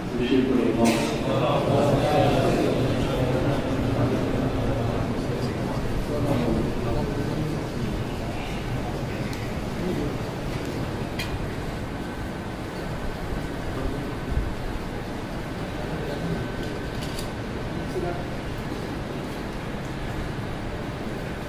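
A crowd of men murmurs and talks in a large echoing hall.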